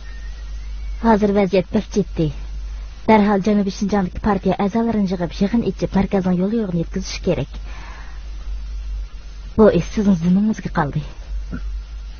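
A woman speaks calmly up close.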